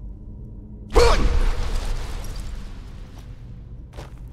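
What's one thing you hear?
A loud rushing blast bursts out and fades away.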